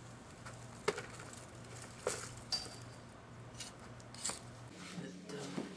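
A garden fork scrapes and digs into dry soil.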